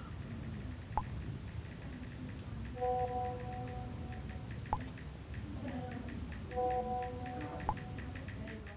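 A phone gives short pops as messages are sent.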